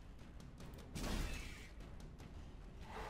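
A sword slashes and strikes a creature.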